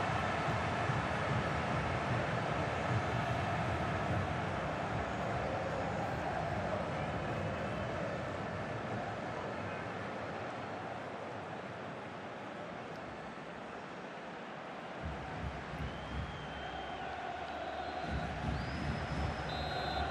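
A large stadium crowd roars and cheers, loud at first and slowly dying down.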